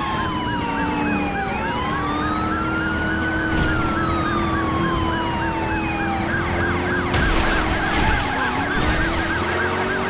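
A police siren wails rapidly and steadily.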